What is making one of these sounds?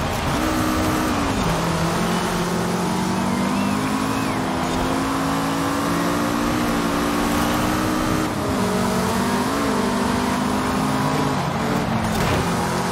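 Tyres rumble and hiss over the road.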